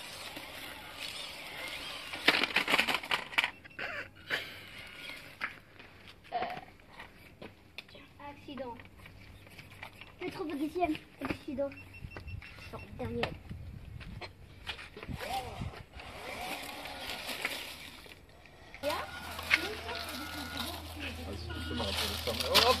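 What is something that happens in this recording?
A small electric motor of a toy truck whirs in short bursts.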